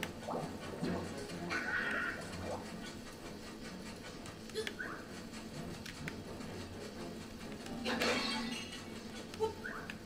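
Video game music plays with chiming sound effects.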